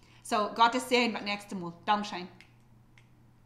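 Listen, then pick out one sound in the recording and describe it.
A woman speaks brightly and close to a microphone.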